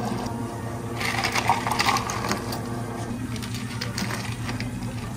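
Ice cubes clatter and rattle into a plastic cup.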